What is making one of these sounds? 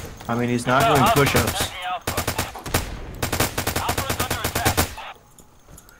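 Rifle shots crack in rapid bursts nearby.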